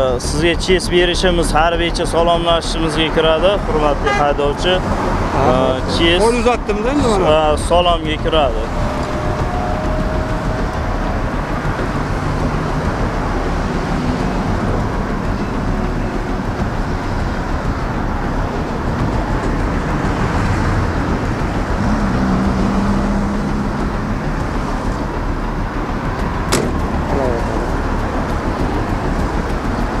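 Traffic hums steadily on a road nearby.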